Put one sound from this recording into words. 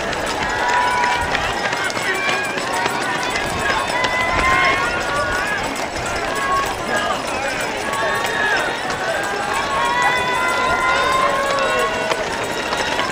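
A crowd of spectators cheers and calls out to passing runners outdoors.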